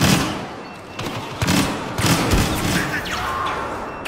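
An explosion booms and roars.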